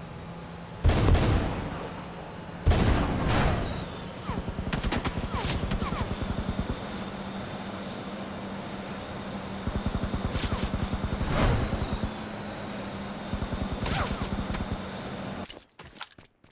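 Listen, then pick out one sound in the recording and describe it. Footsteps run quickly over grass.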